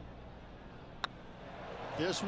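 A golf putter taps a ball with a light click.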